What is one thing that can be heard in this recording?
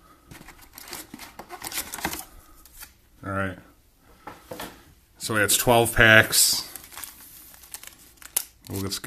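Foil card packs crinkle and rustle as hands shuffle them.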